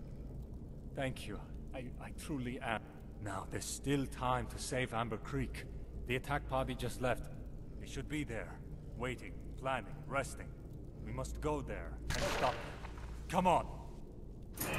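A man speaks calmly and earnestly, close by.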